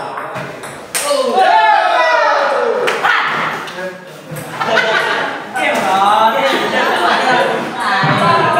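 Men talk and call out around the table.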